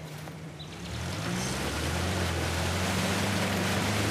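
Water splashes around a jeep wading through a river.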